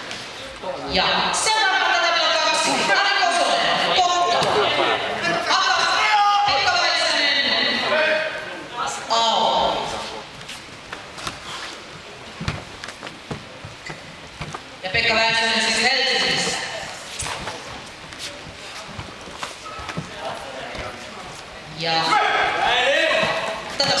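Young karate fighters shout loudly in a large echoing hall.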